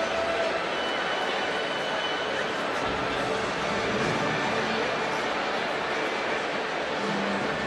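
A large crowd applauds and cheers in a big echoing arena.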